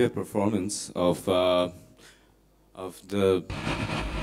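A violin plays short bowed notes.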